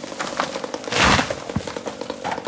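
A felled tree trunk crashes heavily to the ground.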